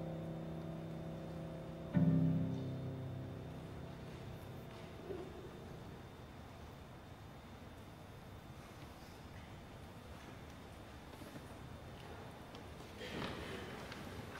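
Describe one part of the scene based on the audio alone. A violin plays a slow melody.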